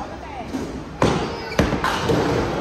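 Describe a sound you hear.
A bowling ball thuds onto a wooden lane.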